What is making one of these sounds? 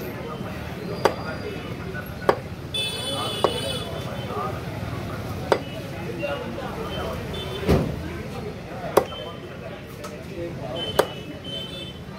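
A cleaver chops through meat onto a wooden block with sharp thuds.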